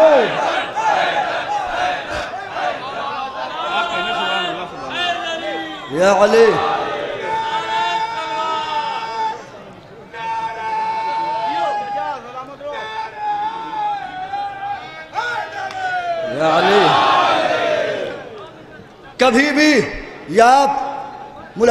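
A young man recites melodically and with feeling into a microphone over loudspeakers.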